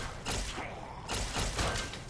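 A laser gun fires with sharp zaps.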